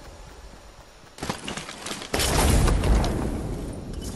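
A treasure chest bursts open with a bright chime.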